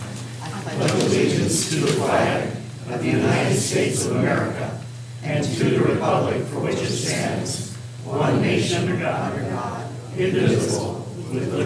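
A crowd of men and women recites together in unison, in a large echoing room.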